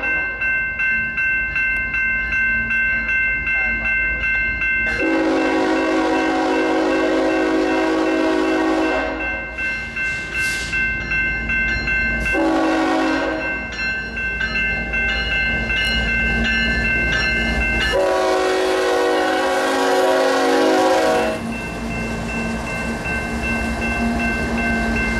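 A freight train's diesel engines rumble as the train approaches and passes close by.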